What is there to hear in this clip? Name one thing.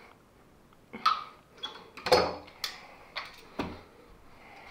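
Metal clamps clank as they are released.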